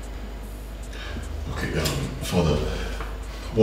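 A middle-aged man speaks quietly, close by.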